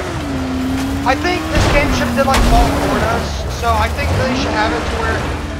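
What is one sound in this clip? Branches scrape and crash against a buggy.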